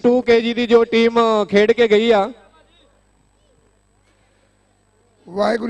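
A man speaks loudly in a drawn-out, sing-song voice over a loudspeaker.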